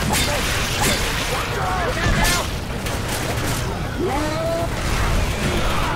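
A blade swings and thuds into flesh.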